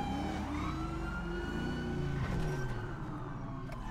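A car engine hums as the car drives off.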